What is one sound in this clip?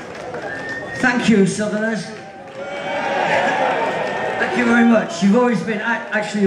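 A man sings loudly through a microphone over a live band.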